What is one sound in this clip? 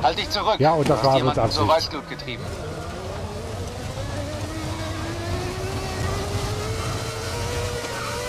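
Tyres skid and crunch over loose gravel.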